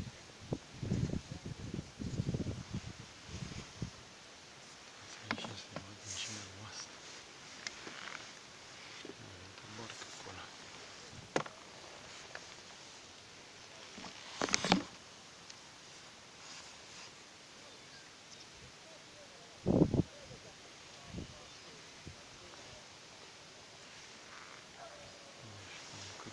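Small waves lap against an inflatable boat.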